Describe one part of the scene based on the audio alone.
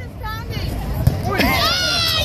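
A ball thuds against a metal target.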